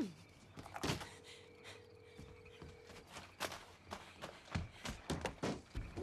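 A window frame rattles and knocks as someone pushes at it.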